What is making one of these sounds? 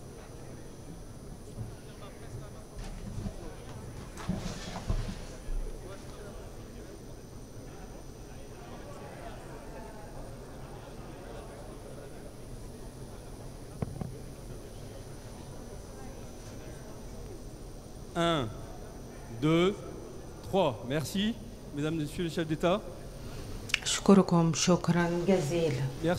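A crowd murmurs and chatters quietly in a large hall.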